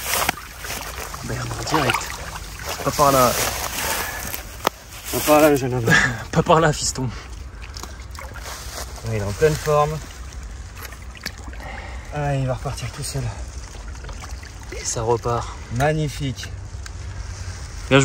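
Water splashes as a large fish thrashes in the shallows.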